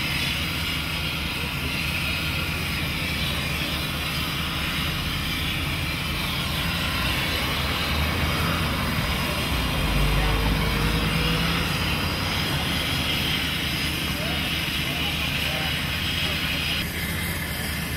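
A hydraulic rescue tool whirs steadily.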